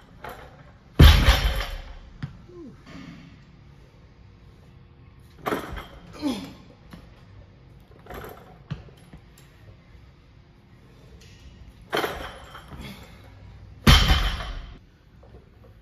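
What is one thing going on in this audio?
A heavy barbell is dropped and crashes onto a rubber floor.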